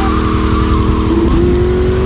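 Tyres screech as a car turns sharply.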